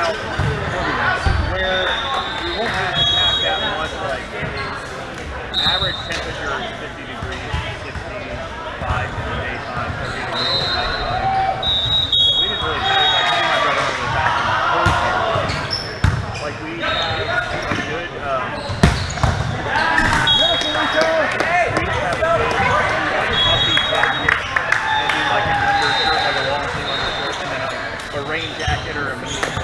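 Young men call out and chatter in a large echoing gym.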